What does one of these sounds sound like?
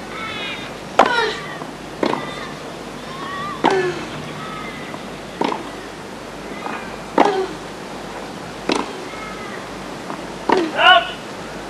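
A tennis ball is struck back and forth with sharp pops of the racket.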